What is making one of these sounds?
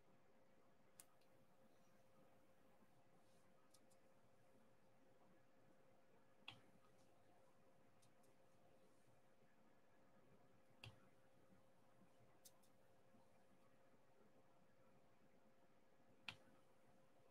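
A pen tool clicks softly as it places small plastic beads.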